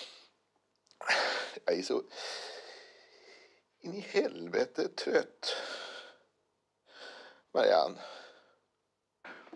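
A middle-aged man speaks slowly and wearily, close by.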